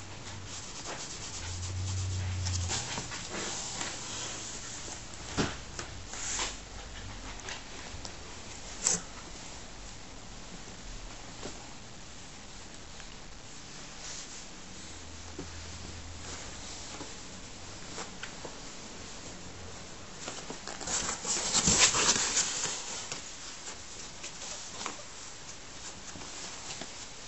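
A hand rustles fabric inside a cardboard box.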